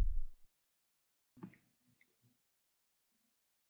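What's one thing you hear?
A man sips a drink close to a microphone.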